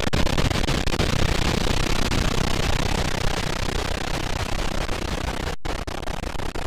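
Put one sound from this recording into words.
Waterfalls roar and splash steadily.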